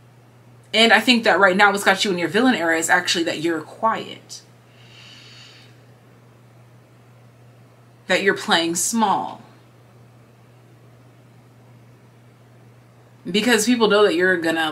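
A young woman talks calmly and close to a microphone, with pauses.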